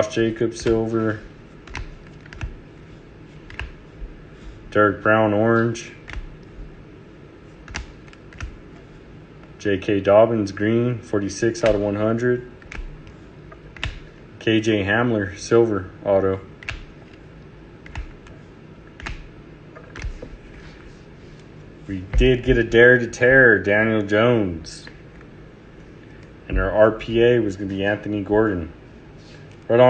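Plastic card cases click and tap against each other.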